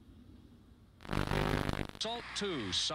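A television's static hisses loudly in a short burst.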